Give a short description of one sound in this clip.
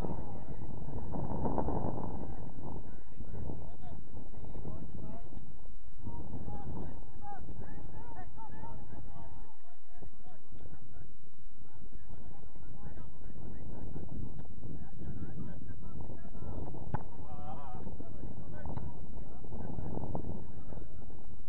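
Young players shout to each other far across an open field.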